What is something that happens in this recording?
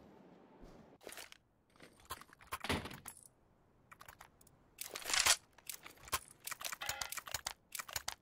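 Short clicks and clacks sound as items are chosen from a game menu.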